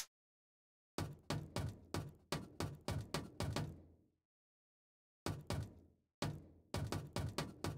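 Footsteps clank quickly up metal stairs.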